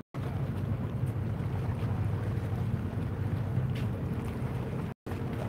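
Water laps gently against a harbour wall.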